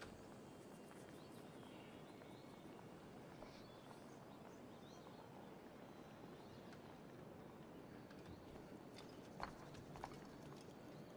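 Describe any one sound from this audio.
Footsteps crunch softly on roof tiles.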